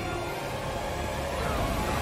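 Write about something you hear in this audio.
A man roars hoarsely.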